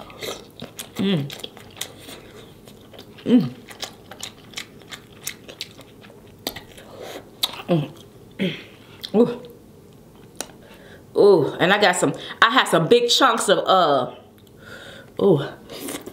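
A young woman hums and moans with pleasure close to a microphone.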